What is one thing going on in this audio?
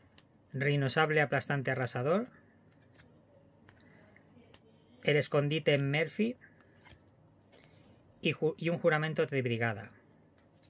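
Trading cards slide and tap softly against each other.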